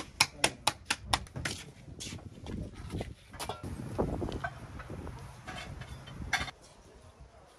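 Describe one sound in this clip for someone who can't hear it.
A woman slaps bread dough between her hands in quick claps.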